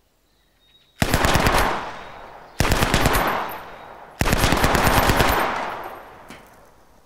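A rifle fires rapid bursts outdoors, each echoing off a hillside.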